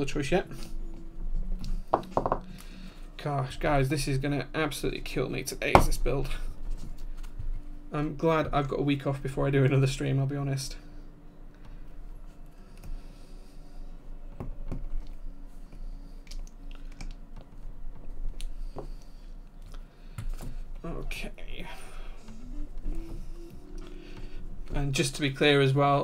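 Keycaps click and clatter as they are pressed onto a keyboard.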